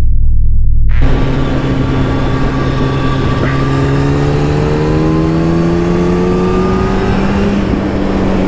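A motorcycle engine hums steadily and climbs in pitch as it speeds up.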